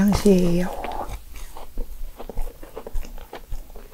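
A woman bites into a crunchy pastry and chews close to a microphone.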